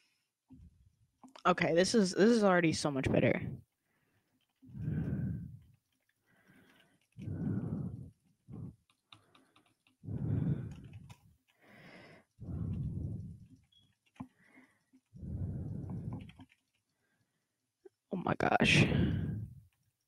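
Keys on a computer keyboard click and clatter.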